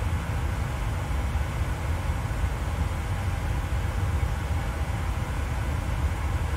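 Jet engines drone steadily with a deep, low rumble.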